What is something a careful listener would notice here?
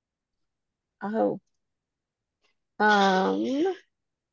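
A woman speaks clearly and slowly into a microphone, in short phrases.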